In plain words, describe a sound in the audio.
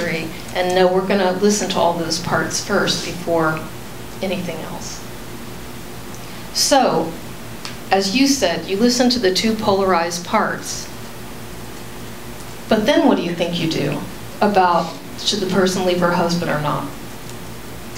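A middle-aged woman speaks into a microphone in short bursts.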